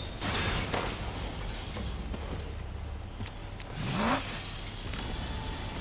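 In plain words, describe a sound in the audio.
A pistol is reloaded with a metallic click.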